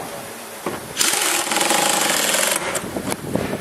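A power drill whirs loudly.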